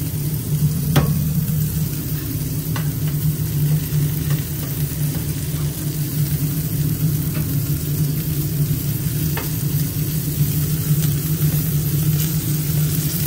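Metal spatulas scrape and clink on a hot griddle.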